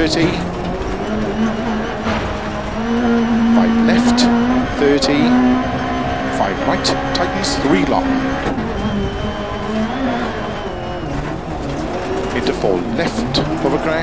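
A rally car engine revs hard, rising and falling as gears change.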